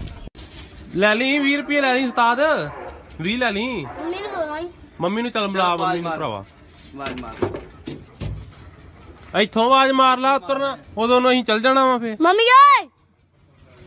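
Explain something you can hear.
A young boy talks in a whiny voice close by.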